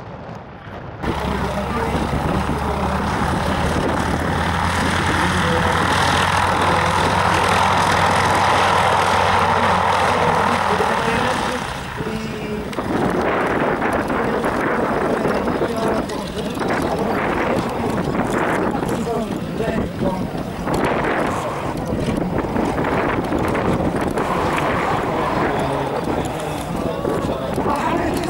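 A propeller plane's engine drones loudly nearby, then idles with a rougher, uneven chug.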